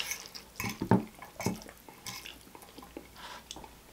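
A fork scrapes against a plate.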